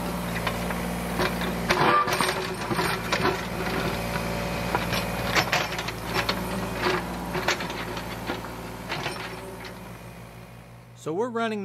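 An excavator bucket scrapes and knocks against dirt.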